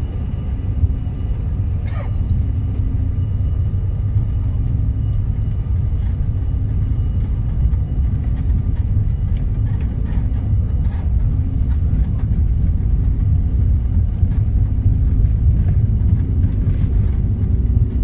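An aircraft engine rumbles steadily from inside the cabin.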